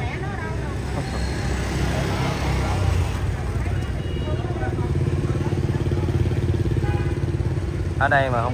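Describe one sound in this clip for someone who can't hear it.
Motorbike engines rumble past close by.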